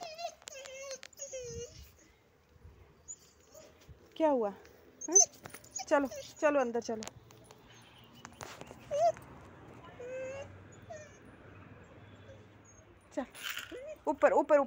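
A dog whines in high, wavering cries, close by.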